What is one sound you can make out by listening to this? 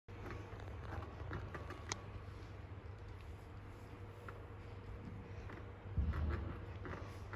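A piano plays.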